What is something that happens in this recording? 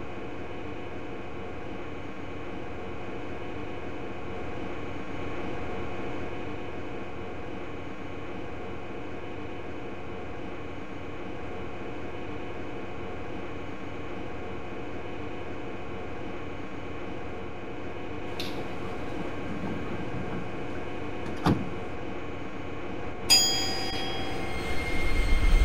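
A train idles with a steady low hum.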